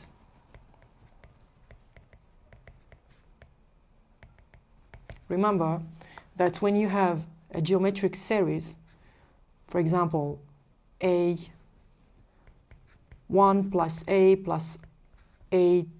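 A pen taps and scratches on a tablet.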